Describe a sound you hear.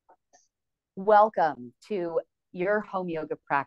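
A middle-aged woman speaks warmly and with animation close to a microphone.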